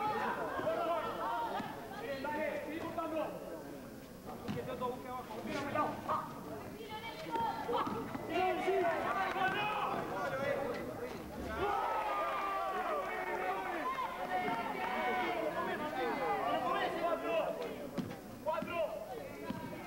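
A crowd of spectators talks and shouts.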